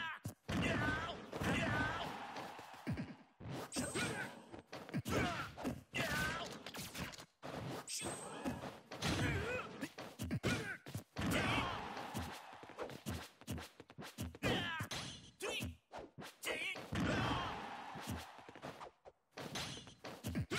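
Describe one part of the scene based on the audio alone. Game fighters land rapid punches, kicks and blaster shots with sharp hits.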